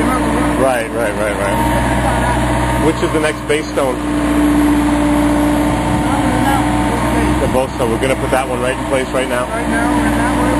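A man talks close by, explaining calmly.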